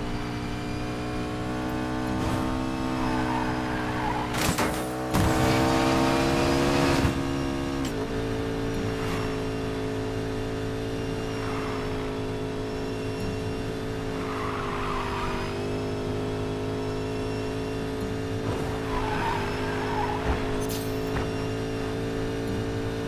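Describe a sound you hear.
A sports car engine roars at high speed, shifting pitch as it accelerates.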